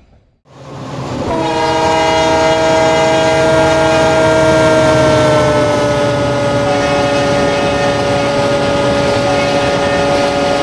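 A diesel train engine drones loudly as a train rolls across a bridge.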